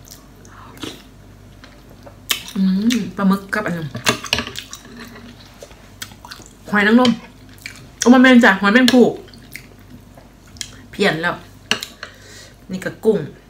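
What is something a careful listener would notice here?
A young woman slurps and chews food noisily.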